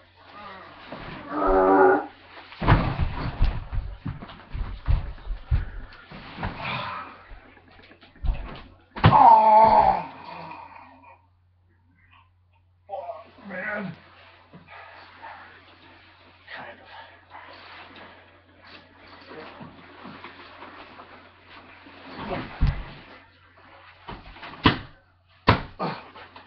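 Young men thud and tumble onto a mattress while wrestling.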